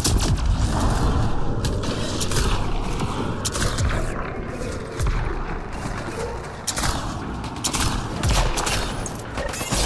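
Energy blasts crackle and boom in rapid bursts.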